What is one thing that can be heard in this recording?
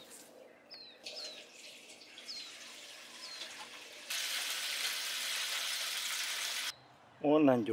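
Water from a hose splashes steadily into a metal bowl.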